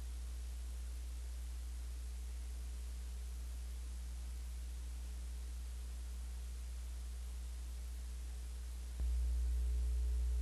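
A heavy hose drags and scrapes across grass.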